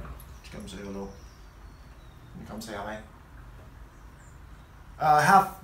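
A man speaks playfully up close in short bursts.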